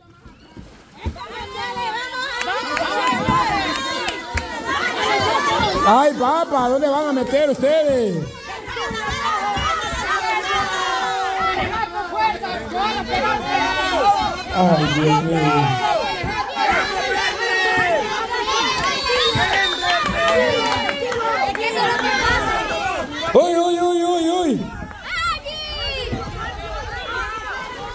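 A large crowd of young people cheers and shouts excitedly outdoors.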